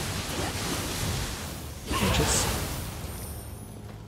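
A weapon strikes with a loud crackling electric burst.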